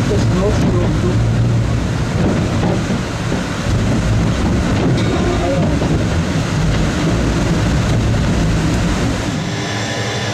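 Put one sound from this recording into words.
A rail car rumbles and rattles along its track through an echoing tunnel.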